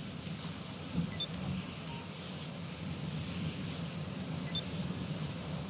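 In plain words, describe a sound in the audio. A game menu beeps softly.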